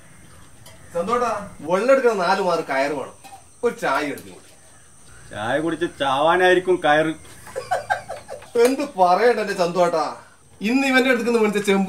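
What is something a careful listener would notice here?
Middle-aged men talk to each other nearby.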